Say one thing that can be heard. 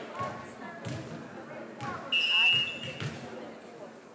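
Young women call out to one another in a large echoing gym.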